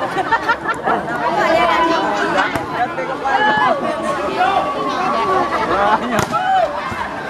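A volleyball is struck hard by a player's hand.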